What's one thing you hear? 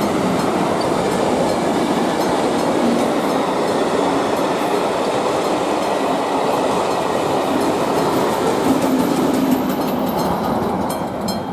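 A passenger train rumbles past close by on the tracks, its wheels clattering.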